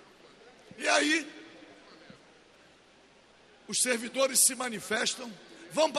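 An elderly man speaks forcefully into a microphone, in bursts with pauses.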